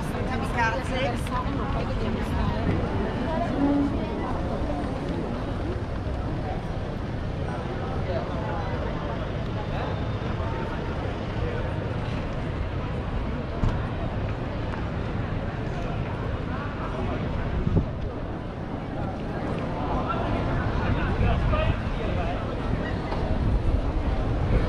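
Outdoors, a crowd of people chatter in the distance.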